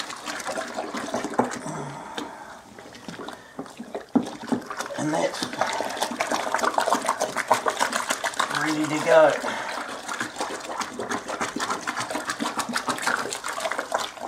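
Water runs from a hose into a tub.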